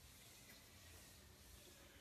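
A board eraser rubs across a whiteboard.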